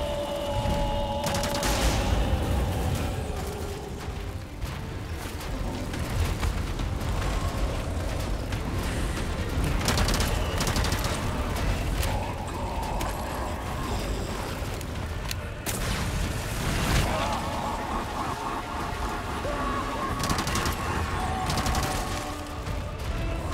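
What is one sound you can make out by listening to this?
Gunshots crack loudly.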